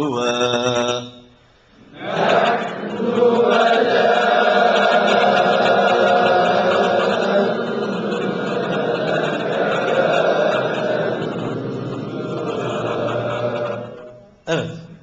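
A man sings a drawn-out chant into a microphone, heard through a loudspeaker.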